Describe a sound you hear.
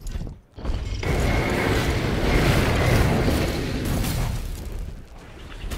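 A fiery explosion booms and rumbles.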